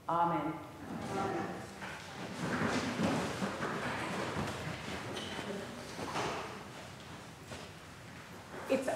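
A woman speaks calmly over a loudspeaker in an echoing room.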